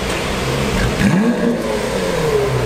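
A sports car engine starts with a short roar.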